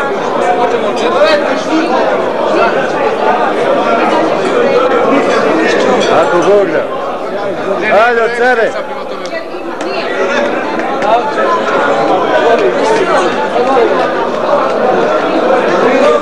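A crowd of men talks and chatters loudly nearby.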